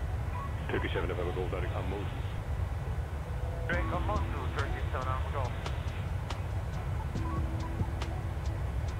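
A jet engine drones with a low, steady roar.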